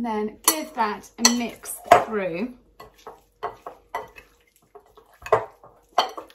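A spoon clinks and scrapes in a glass bowl as food is mixed.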